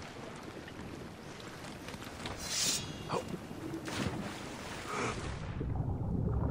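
Water laps softly against a wooden boat.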